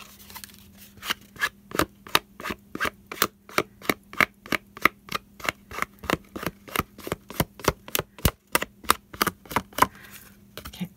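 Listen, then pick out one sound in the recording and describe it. An ink pad dabs repeatedly against card with quick, soft taps.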